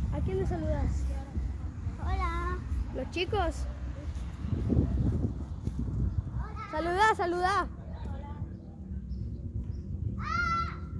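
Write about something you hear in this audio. A young child calls out excitedly close by.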